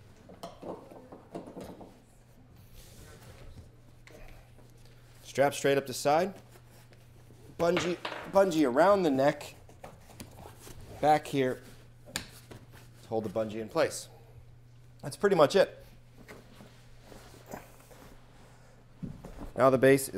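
A padded fabric case rustles and thumps as it is handled.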